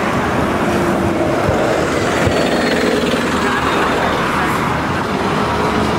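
A bus engine rumbles as the bus passes close by.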